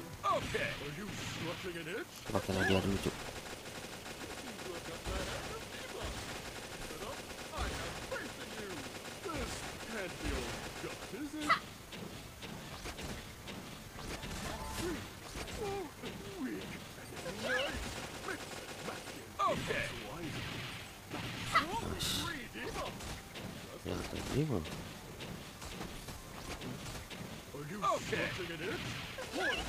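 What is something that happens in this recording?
Gunshots and blasts go off repeatedly.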